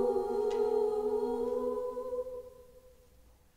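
A double bass plays a slow melody.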